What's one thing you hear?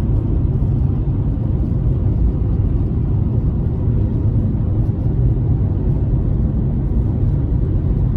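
Tyres rumble steadily on the road, heard from inside a moving car.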